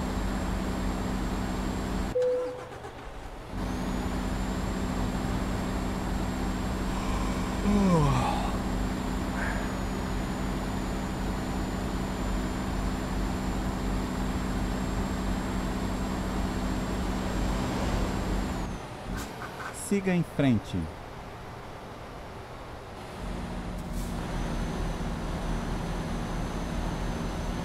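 A heavy truck engine drones as it hauls a load.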